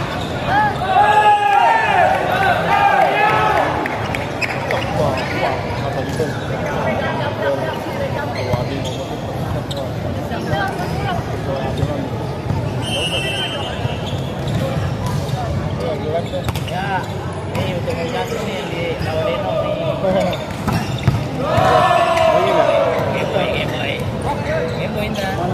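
Young men shout and cheer in a large echoing hall.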